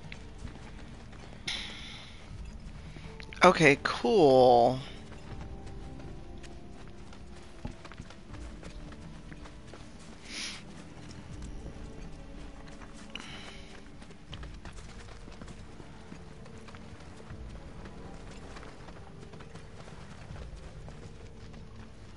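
Footsteps crunch over rubble and dirt.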